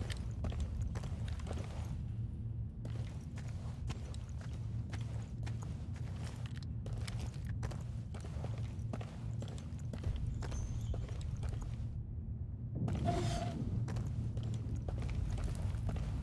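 Footsteps crunch slowly on a dirt floor.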